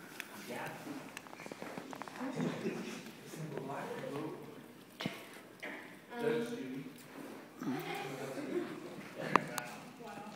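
Young people chatter and talk nearby.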